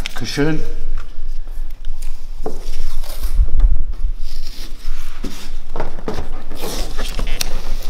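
Masking tape peels and tears off a roll.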